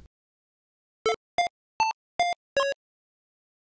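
Short electronic synth notes play one after another in a simple melody.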